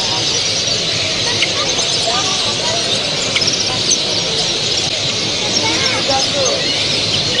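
Many small caged birds chirp and twitter all around.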